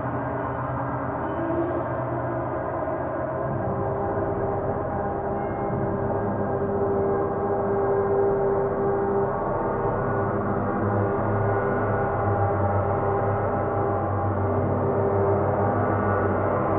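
A large gong hums and swells in a dense, shimmering drone.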